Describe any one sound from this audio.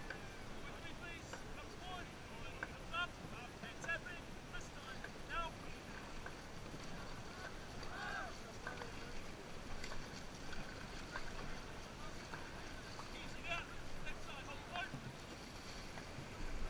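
Paddles splash rhythmically in the water.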